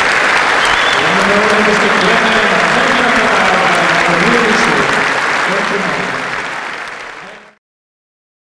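A crowd cheers and whoops.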